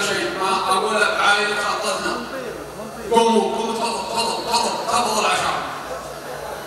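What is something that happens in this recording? A man speaks loudly into a microphone through a loudspeaker in a large echoing hall.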